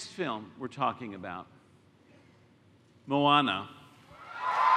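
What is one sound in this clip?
A man speaks with animation through a microphone in a large hall.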